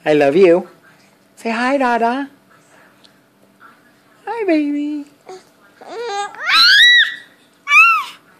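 A baby babbles and squeals loudly up close.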